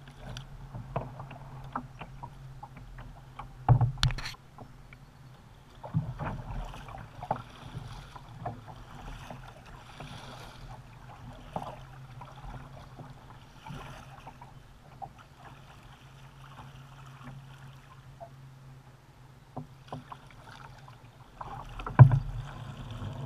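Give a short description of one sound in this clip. A paddle splashes and drips in the water.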